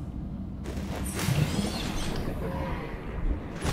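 Bubbles gurgle underwater.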